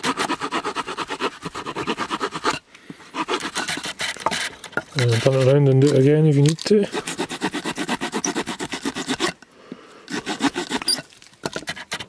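A knife blade scrapes rapidly along a stick, shaving off bark.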